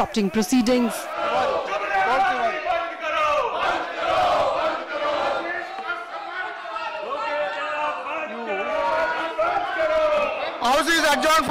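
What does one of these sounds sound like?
A crowd of men shouts over one another in a large hall.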